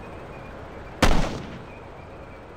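A rifle fires a single loud shot that echoes briefly.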